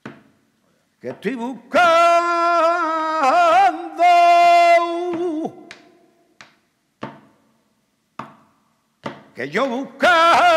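A man sings with a strained, wavering voice, close by.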